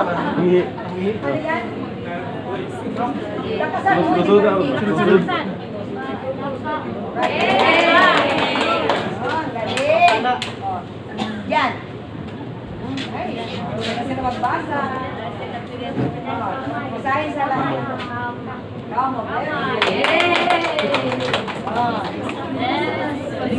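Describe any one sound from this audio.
A crowd of children and adults murmurs and chatters.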